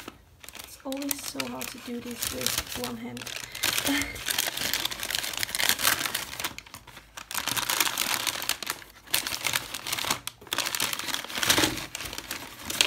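A plastic wrapper crinkles and rustles as it is handled and torn open.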